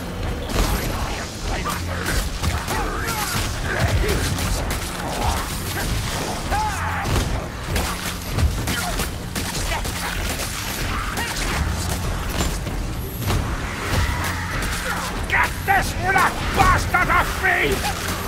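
Creatures shriek and squeal.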